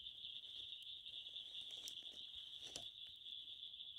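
Wood knocks against metal as a stick is pushed into a stove.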